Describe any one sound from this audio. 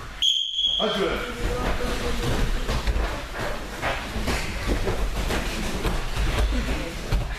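Bodies thud and scuffle on a padded mat in an echoing hall.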